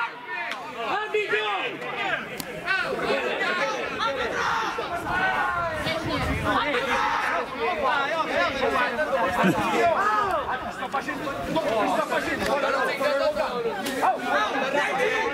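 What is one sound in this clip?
Young men shout to one another across an open outdoor pitch.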